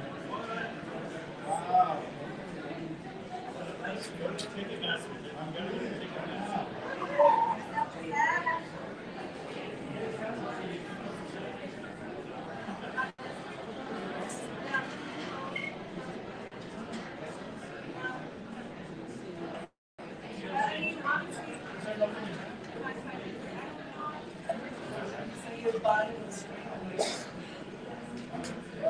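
Several men talk calmly with overlapping chatter.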